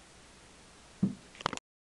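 A hand knocks and fumbles close by.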